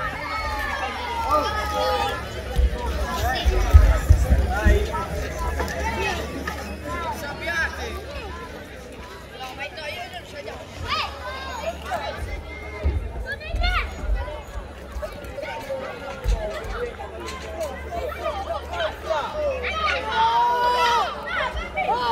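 Children shout and cheer nearby.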